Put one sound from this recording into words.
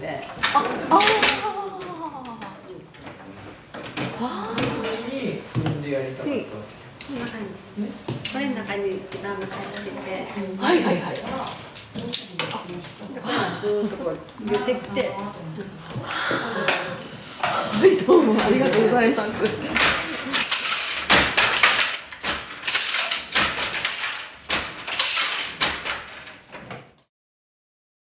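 Wooden hand looms clack and thump as weavers work them.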